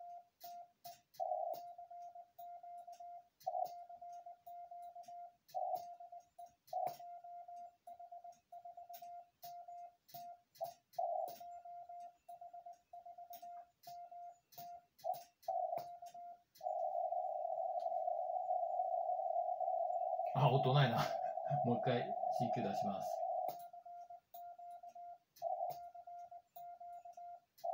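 A telegraph key clicks sharply under a hand.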